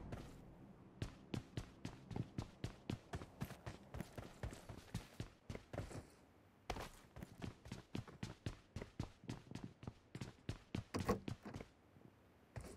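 Footsteps tap quickly on hard floors and ground.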